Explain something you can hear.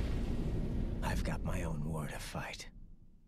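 A man speaks briefly and calmly into a close microphone.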